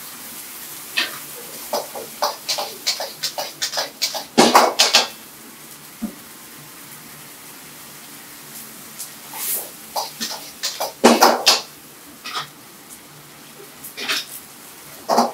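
A metal ladle scrapes and clanks against a wok.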